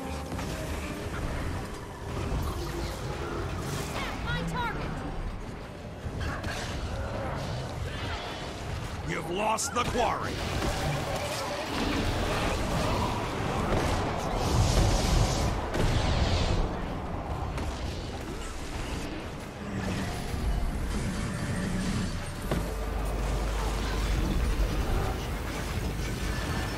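Magic blasts crackle and boom in a fast battle.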